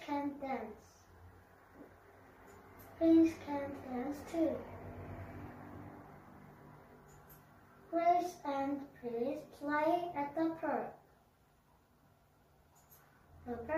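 A young boy speaks clearly and carefully, close by, in short bursts.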